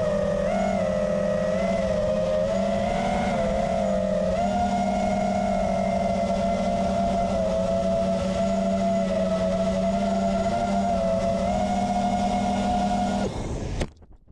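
A small propeller motor hums steadily at high pitch, rising and falling slightly.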